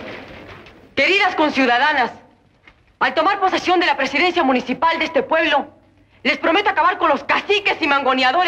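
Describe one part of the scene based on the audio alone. A young woman speaks clearly and firmly.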